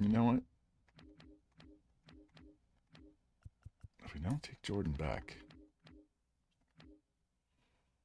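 Short game menu blips sound in quick succession.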